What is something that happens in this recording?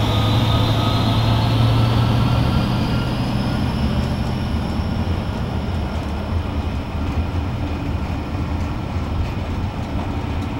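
A diesel locomotive engine rumbles loudly close by and slowly moves away.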